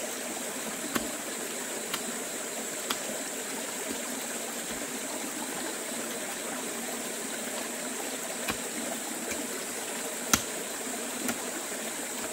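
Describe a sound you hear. A hoe thuds into dry earth again and again.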